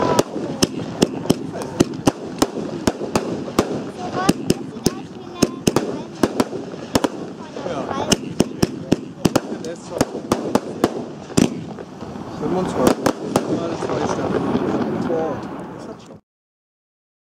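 Fireworks bang loudly in the open air.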